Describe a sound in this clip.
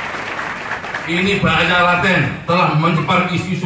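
A man sings loudly through loudspeakers.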